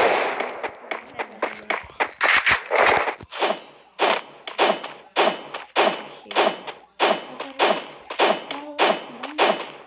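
Footsteps run quickly and rhythmically.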